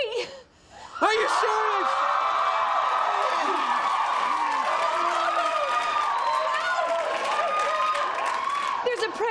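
A group of people cheer and shout with joy.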